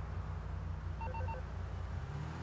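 A phone gives three quick beeps.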